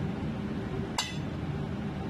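A metal ladle clinks against a plate.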